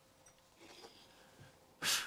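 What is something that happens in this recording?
A middle-aged man speaks quietly.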